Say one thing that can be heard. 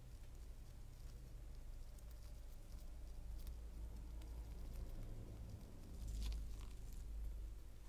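A metal tool scrapes and cracks an eggshell with small crisp clicks.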